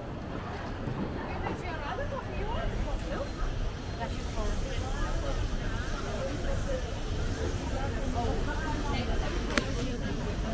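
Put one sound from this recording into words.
A crowd of people chatter in the open air.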